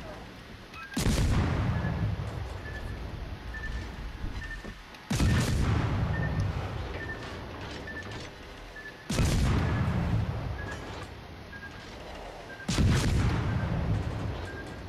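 Heavy ship guns fire loud booming salvos that rumble away.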